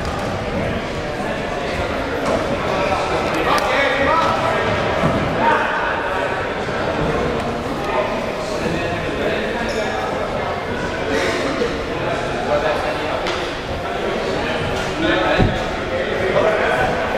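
Bodies thump and scuffle on a mat.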